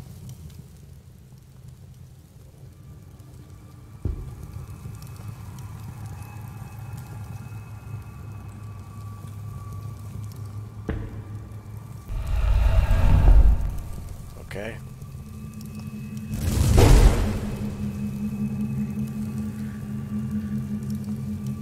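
A torch flame crackles and roars softly.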